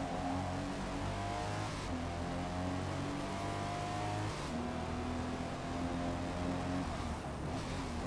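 A car engine revs high and shifts through gears.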